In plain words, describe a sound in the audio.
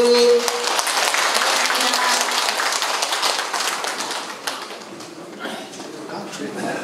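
An audience claps and applauds in an echoing hall, then the applause fades.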